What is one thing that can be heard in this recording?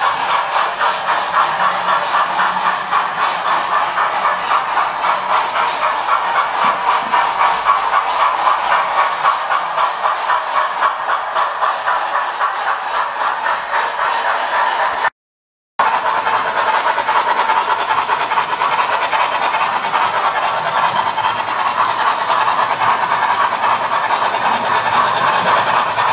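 A small model train rattles and clicks rapidly along its track, with a steady whirring.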